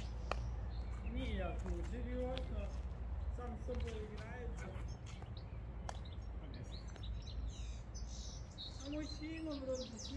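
A young man talks casually at a distance outdoors.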